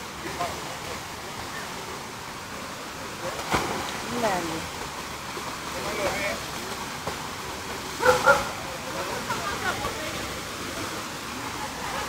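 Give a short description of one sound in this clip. A small waterfall splashes steadily.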